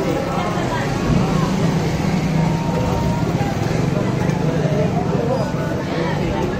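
A motorcycle engine rumbles past nearby.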